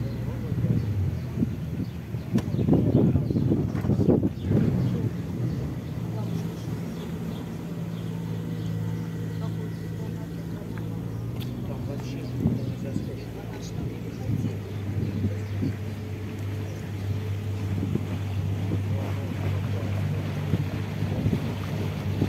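Water splashes and swishes against a moving boat's hull.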